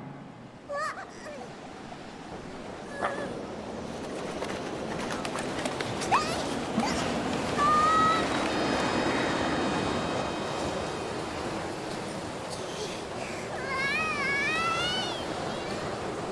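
A small cartoon creature chirps in a high, squeaky voice.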